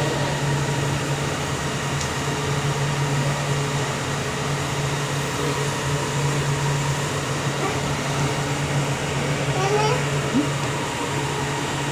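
A train hums and rumbles steadily while moving.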